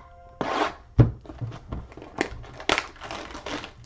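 Plastic wrapping crinkles and tears close by.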